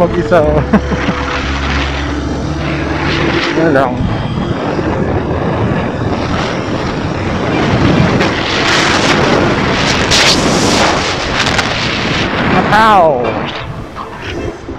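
Wind rushes past a motorcycle rider's helmet.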